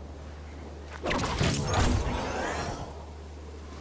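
A glider snaps open with a loud whoosh.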